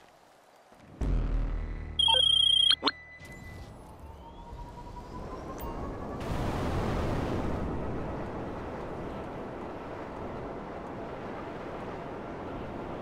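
A hovering jet engine starts with a deep rumble and roars steadily.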